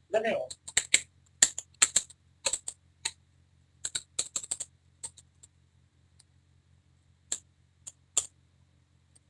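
A computer keyboard clicks with quick keystrokes.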